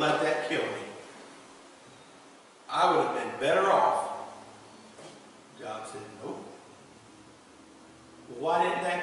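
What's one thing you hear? A man preaches with animation in a large echoing hall, his voice coming in bursts with pauses.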